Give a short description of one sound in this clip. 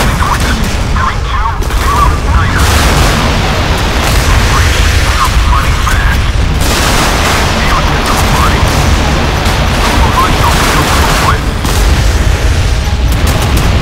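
Naval guns fire in rapid, booming bursts.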